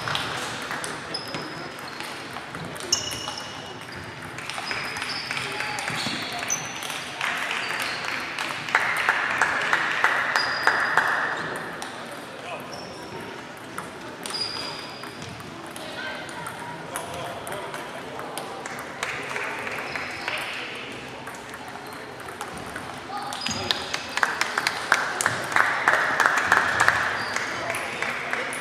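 Table tennis balls click on tables and paddles in a large echoing hall.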